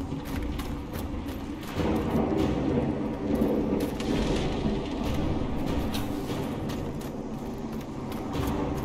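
Footsteps crunch quickly across ice and snow.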